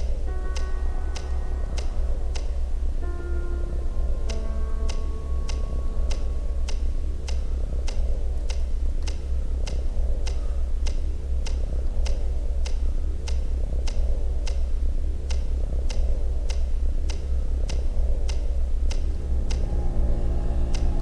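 Footsteps tap at a steady pace.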